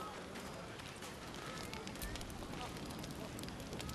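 A campfire crackles nearby.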